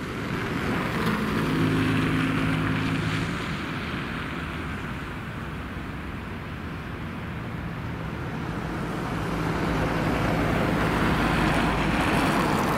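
A car drives by close up with a low engine hum.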